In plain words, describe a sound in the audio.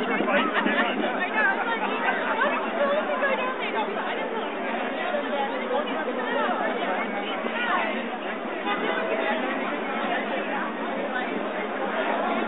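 A crowd of people chatters outdoors on a busy street.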